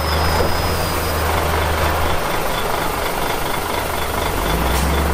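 A bulldozer engine rumbles steadily at a distance.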